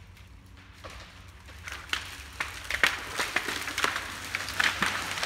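Wind rushes through the treetops outdoors.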